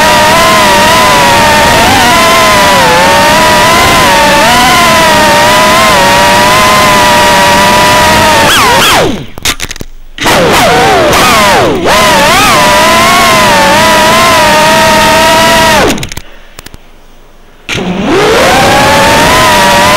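A small drone's motors whine high and steadily, rising and falling in pitch and briefly cutting out twice.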